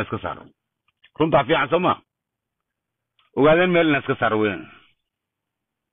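A middle-aged man talks cheerfully close to a phone microphone.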